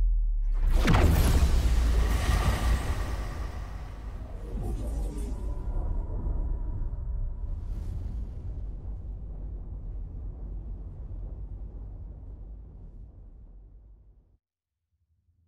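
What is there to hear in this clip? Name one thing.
A huge explosion booms with a deep rumble that slowly fades away.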